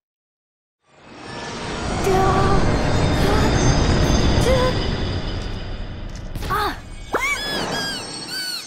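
A large monster rumbles and roars with a deep, loud roar.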